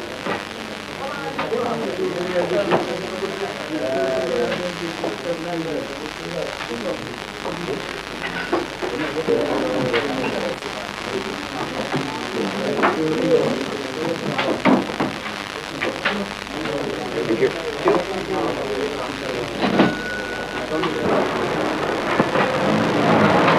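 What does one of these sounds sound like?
Shoppers' voices murmur nearby.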